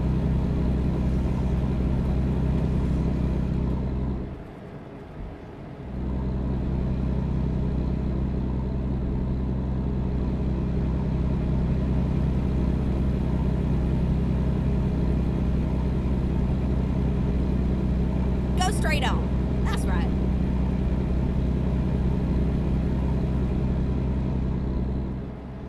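Rain patters softly on a windscreen.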